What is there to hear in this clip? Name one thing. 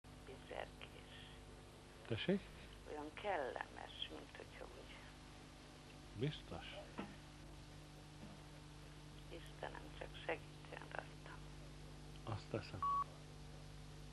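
A middle-aged man speaks calmly and haltingly into a clip-on microphone, close by.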